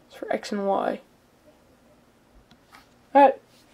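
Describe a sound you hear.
Stiff cards rustle and slide in a hand.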